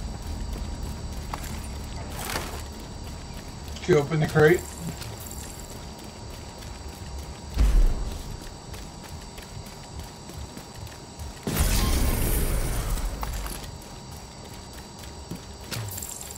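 Footsteps thud on grass and wet ground.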